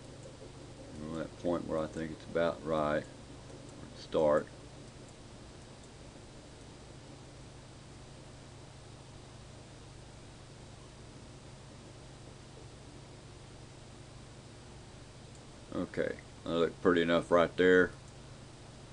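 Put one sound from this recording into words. An elderly man speaks calmly close to the microphone.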